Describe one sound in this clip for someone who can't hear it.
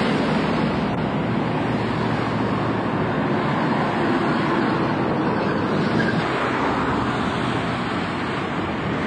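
A bus engine rumbles nearby.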